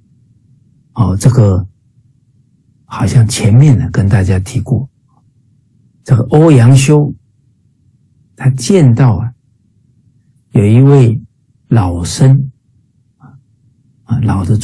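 A middle-aged man speaks calmly in short bursts over an online call.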